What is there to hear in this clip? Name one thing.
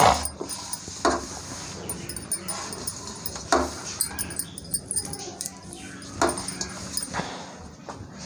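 A metal bowl knocks softly now and then.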